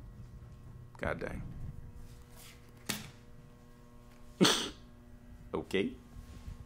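A young man makes short, nervous exclamations close to a microphone.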